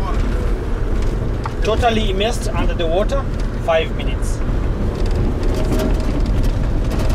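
A bus engine rumbles steadily.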